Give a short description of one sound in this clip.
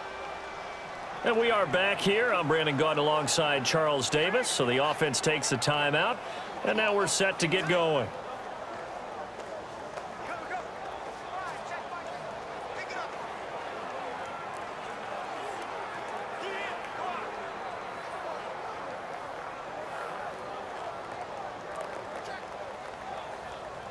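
A large stadium crowd murmurs steadily in the background.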